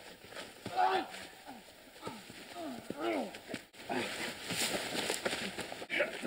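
Bodies scuffle and thud on dry leaves.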